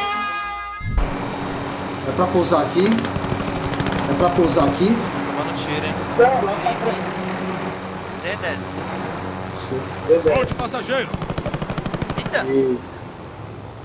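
A helicopter's rotor thumps and whirs steadily.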